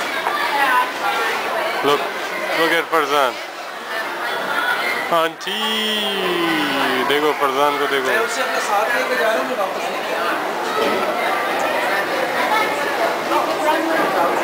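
A crowd of voices murmurs in an echoing indoor hall.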